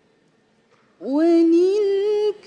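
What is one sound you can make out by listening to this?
A young woman chants in a long, melodic voice through a microphone.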